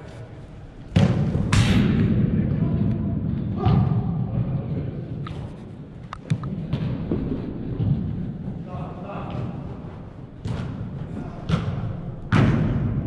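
A football is kicked hard, with thuds echoing in a large hall.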